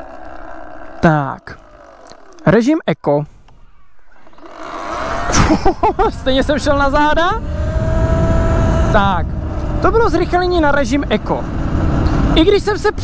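An electric motor whines, rising and falling in pitch.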